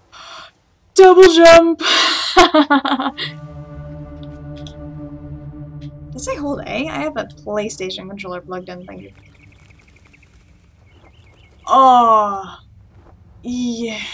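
A young woman talks animatedly into a microphone, close by.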